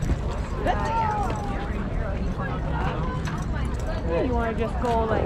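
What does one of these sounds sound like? A metal chain clinks and rattles close by.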